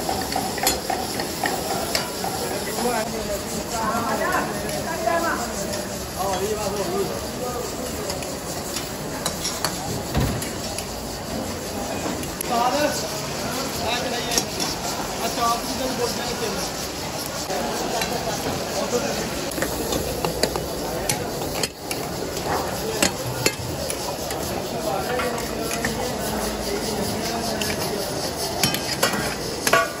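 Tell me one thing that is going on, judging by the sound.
Metal ladles scrape and clang against woks.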